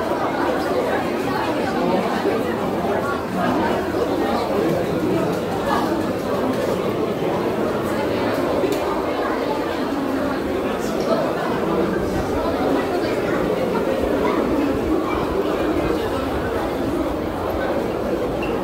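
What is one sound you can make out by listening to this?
A crowd of people chatters all around in an echoing indoor space.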